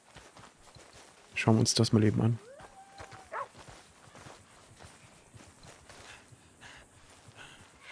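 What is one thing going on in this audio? Footsteps swish through grass.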